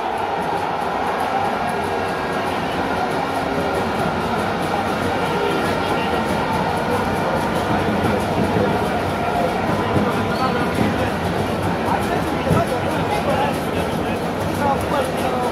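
A large stadium crowd roars and chants steadily in the distance.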